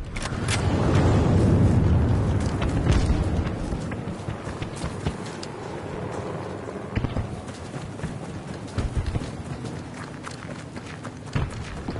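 Footsteps crunch on dirt as a soldier runs.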